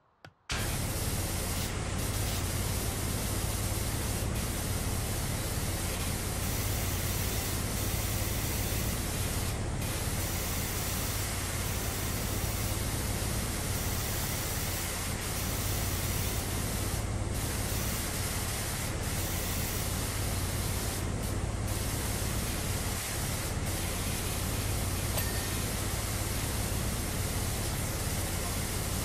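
A pressure washer sprays water in a steady, hissing roar.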